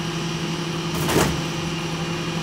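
A loud thud sounds as a box is dropped into a garbage truck.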